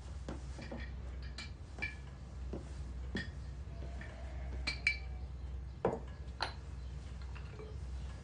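A ceramic teapot clinks and knocks as it is handled and set down.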